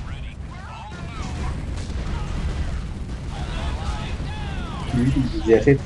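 Explosions boom and gunfire rattles in a video game.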